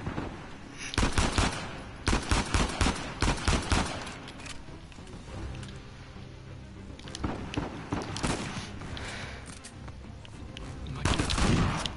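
Gunshots crack sharply and echo in a large hall.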